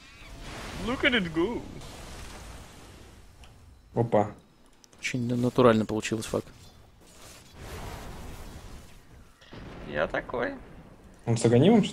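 Magic spells whoosh and crackle in a fast fantasy battle.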